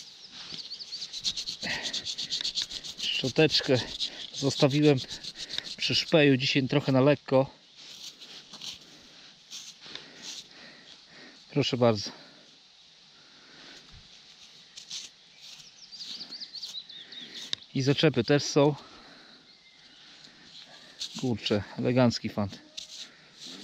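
Gloved hands rub and scrape crumbling soil off a small object.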